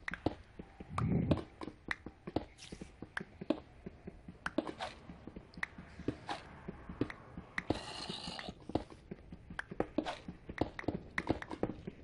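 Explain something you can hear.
Stone blocks crumble and break apart.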